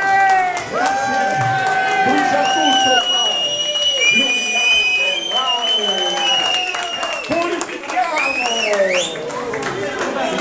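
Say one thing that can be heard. A crowd of men and women sings loudly along.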